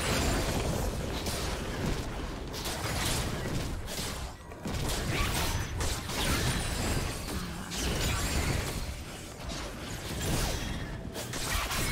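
Magic spells whoosh and crackle as game characters fight.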